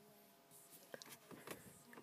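A finger presses a button on a car radio with a soft click.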